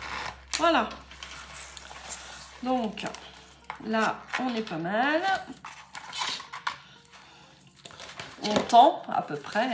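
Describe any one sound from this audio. Stiff paper pages rustle and flap as they are turned.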